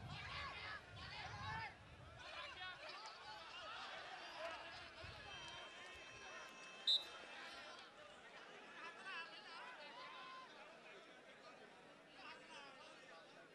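A crowd talks and murmurs outdoors.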